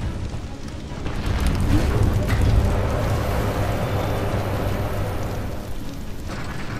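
A fire roars in a furnace.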